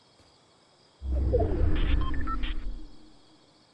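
A video game alert sounds with a deep rumble and short chimes.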